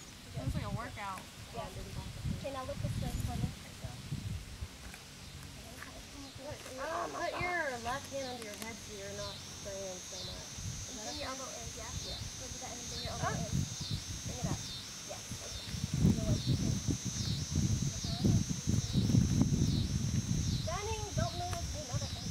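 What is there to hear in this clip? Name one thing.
Young women talk and laugh nearby, outdoors.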